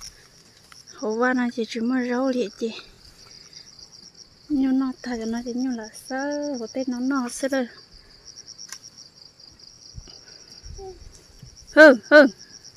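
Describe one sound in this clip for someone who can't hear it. Cattle munch on grass.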